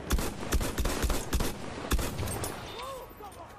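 A light machine gun fires rapid bursts.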